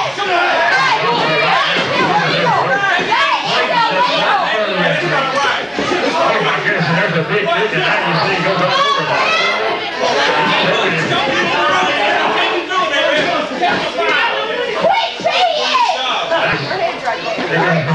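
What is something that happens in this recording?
Wrestlers' bodies thud onto the ring mat.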